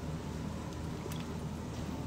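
A young man gulps water from a plastic bottle.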